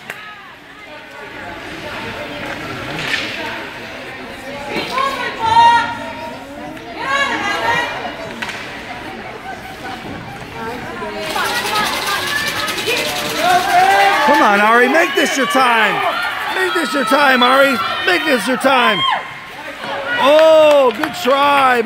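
Ice hockey skates scrape across the ice in an echoing indoor rink.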